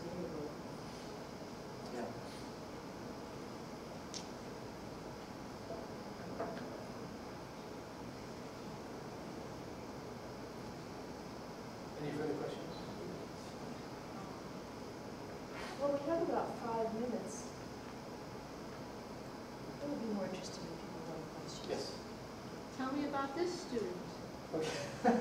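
A man speaks calmly in short bursts with long pauses.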